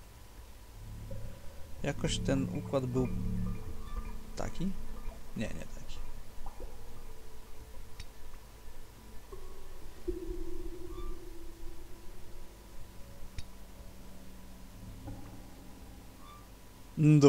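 Metal valves on pipes clank and squeak as they turn.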